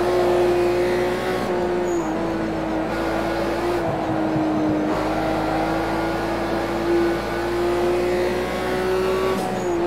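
A car engine drones steadily at high revs, shifting pitch slightly through gear changes.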